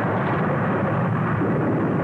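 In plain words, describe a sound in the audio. A blast of fire whooshes and hisses.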